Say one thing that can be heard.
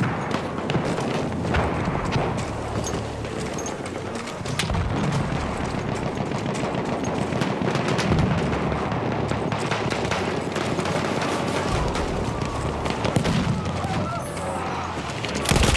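Footsteps run quickly over dirt and grass.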